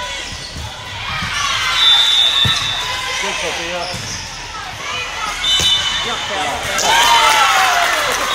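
Spectators and players chatter and call out in a large echoing gym.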